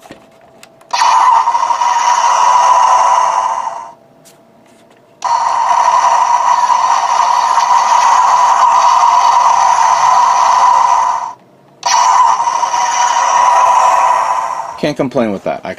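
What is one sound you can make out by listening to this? A toy's electronic engine rumble roars steadily from a small speaker, stopping and starting again.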